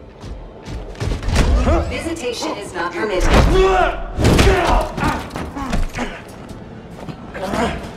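Heavy blows and crashes ring out in a fight.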